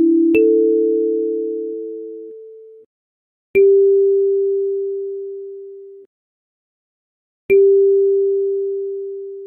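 Single kalimba notes are plucked slowly, each ringing out and fading.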